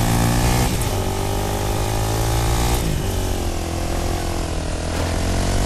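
A small quad bike engine hums steadily and shifts pitch as it drives.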